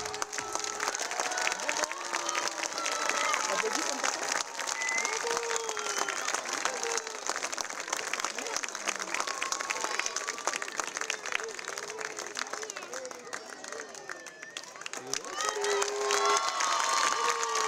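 Many hands clap in a fast, uneven patter.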